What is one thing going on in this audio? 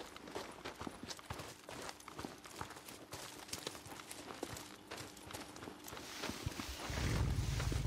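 Footsteps swish and crunch through tall grass.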